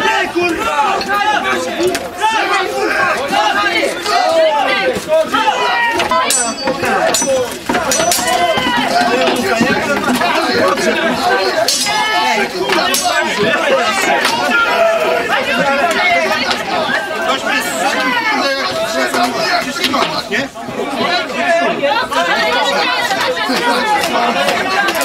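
A crowd of men shouts and yells loudly.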